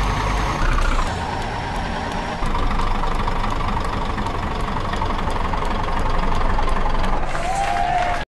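A heavy truck engine drones at low speed in a driving game.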